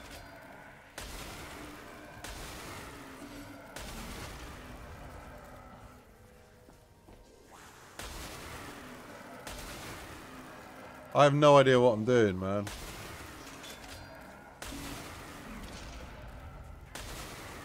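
A weapon fires bursts of crackling blasts.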